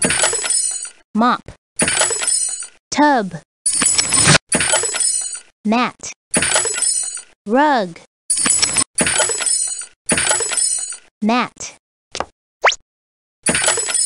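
Playful cartoon sound effects boing and chime as boxes pop open.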